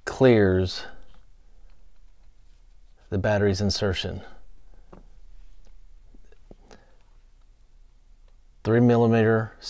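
Small plastic parts click softly as they are handled.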